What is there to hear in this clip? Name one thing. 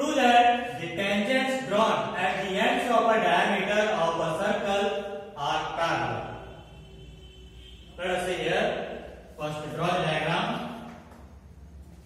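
A young man speaks clearly and calmly, explaining as he teaches.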